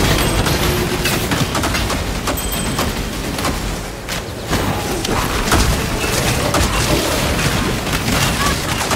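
Magic spells crackle and burst in rapid succession.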